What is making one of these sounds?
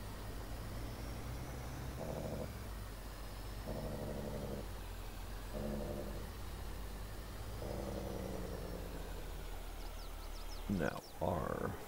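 A truck engine hums steadily as it drives.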